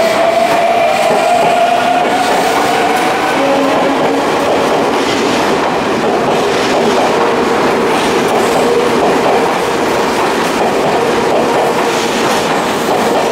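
An electric commuter train pulls out of a station, its motors whining.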